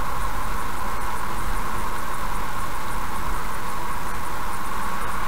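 A car drives steadily along a road, its tyres rumbling on the tarmac.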